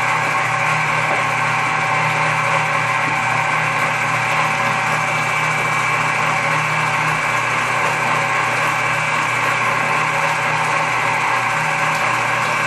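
An electric food mill hums and whirs steadily.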